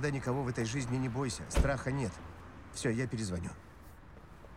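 A middle-aged man speaks up close with feeling.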